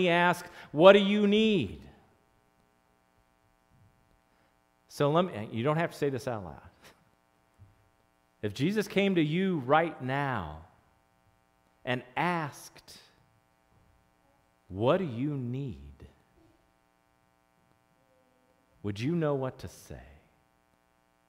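A middle-aged man speaks with animation into a headset microphone, in short bursts with pauses.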